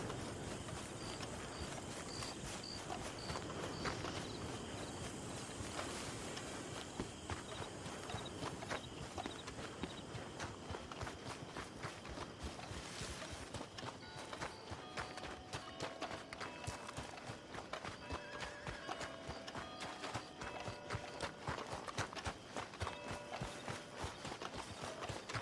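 Footsteps crunch quickly on gravel and dirt.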